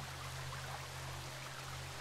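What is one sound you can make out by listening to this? A waterfall rushes steadily nearby.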